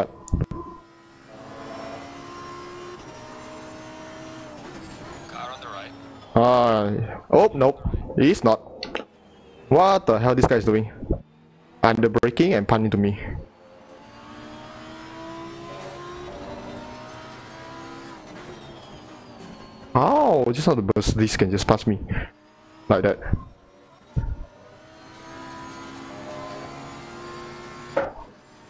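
A racing car engine roars, rising in pitch and dropping as it shifts through gears.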